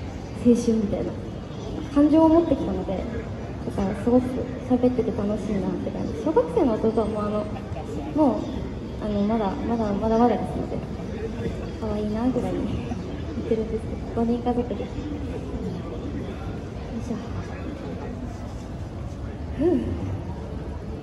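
A young woman sings into a microphone through a loudspeaker outdoors.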